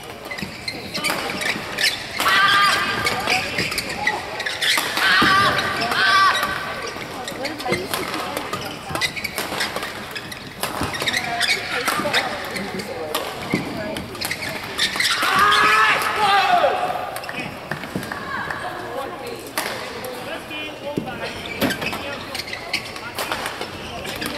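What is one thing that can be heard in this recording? Rackets strike a shuttlecock back and forth in a fast rally.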